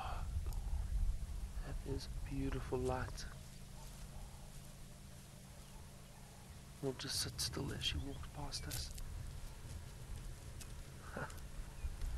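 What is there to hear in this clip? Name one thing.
A lion pads softly over dry grass and dirt.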